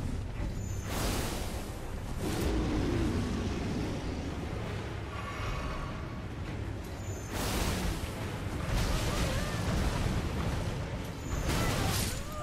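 Sword blows clash and thud in sharp bursts.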